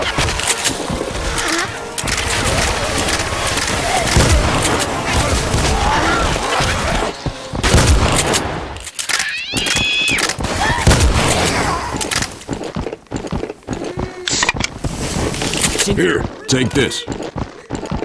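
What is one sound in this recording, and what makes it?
Shotgun blasts boom repeatedly.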